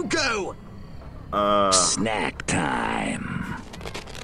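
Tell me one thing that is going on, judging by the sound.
A man calls out in a raspy, menacing cartoon voice, close by.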